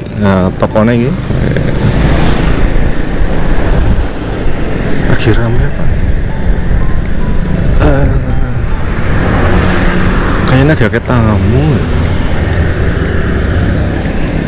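A motorbike engine rumbles close by and revs up now and then.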